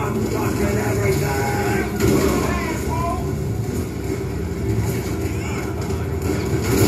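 Gunshots and explosions from a video game play through a television speaker.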